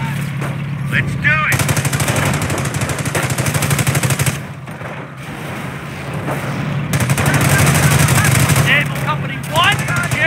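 Shells explode with heavy booms.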